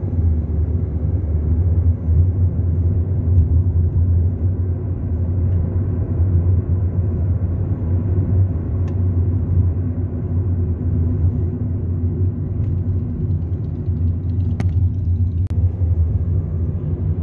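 A car's engine hums low and steady from inside the cabin.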